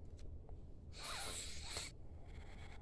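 A young man breathes out heavily close by.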